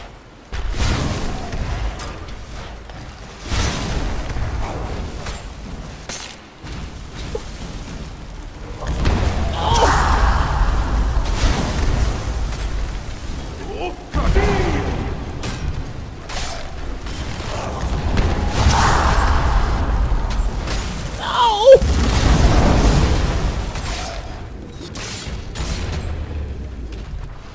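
Magic spells crackle and roar in loud bursts.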